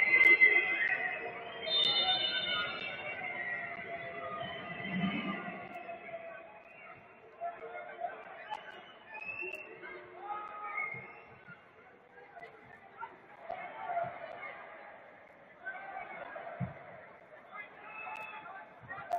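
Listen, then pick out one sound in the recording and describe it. A large stadium crowd chants and sings in a big open space.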